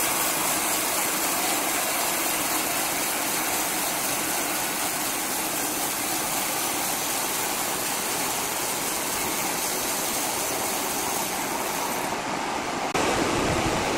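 A horizontal band saw cuts through a large log.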